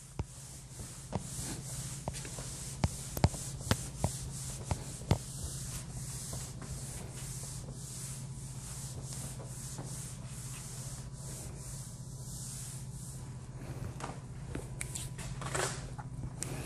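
A cloth rubs and squeaks across a whiteboard.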